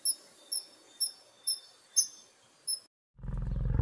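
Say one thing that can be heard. A small bird gives short, sharp chirps.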